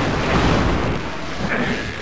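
A creature splatters with a wet squelch as it is hit.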